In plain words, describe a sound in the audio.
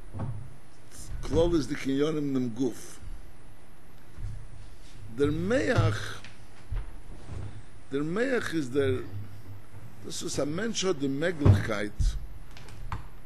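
An elderly man speaks slowly and expressively into a microphone, with pauses between phrases.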